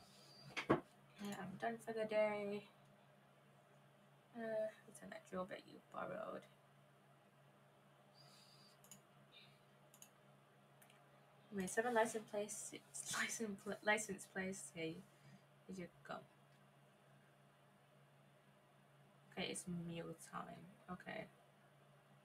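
A young woman talks casually and with animation into a close microphone.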